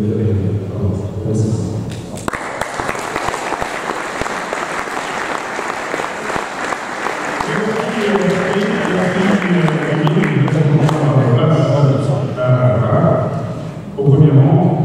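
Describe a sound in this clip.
A man speaks calmly through a microphone and loudspeaker in a large echoing hall.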